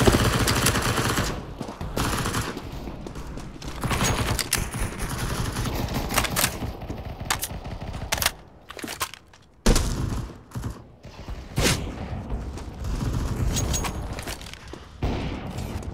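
A heavy pistol fires shots in a video game.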